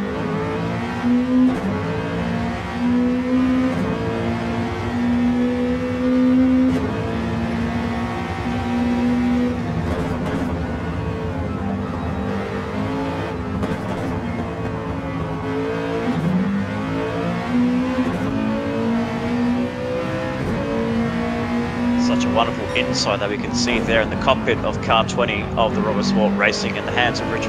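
A racing car engine roars, rising in pitch and dropping again with each gear change.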